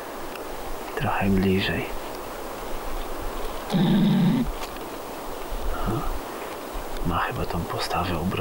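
A man speaks quietly outdoors.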